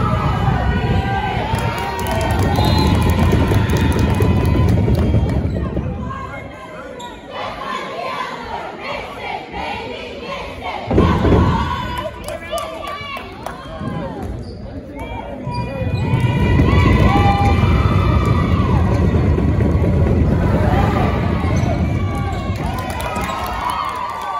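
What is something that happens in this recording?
Basketball players' sneakers squeak on a hardwood court.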